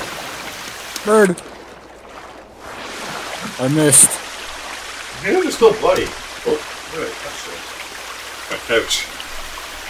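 A man grunts and speaks in short bursts nearby.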